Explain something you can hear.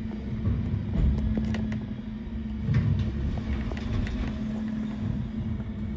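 Bins clank and knock against a garbage truck's lifting gear.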